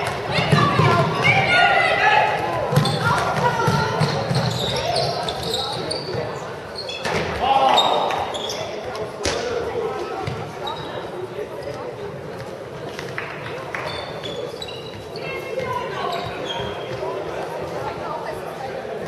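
Young girls shout and call out in a large echoing hall.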